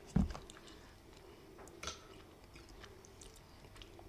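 A man chews food close to the microphone.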